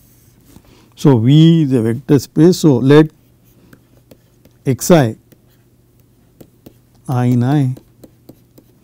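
A middle-aged man speaks calmly and slowly into a close microphone, with long pauses.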